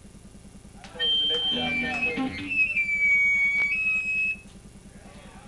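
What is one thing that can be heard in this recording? A man shouts loudly into a microphone over loudspeakers.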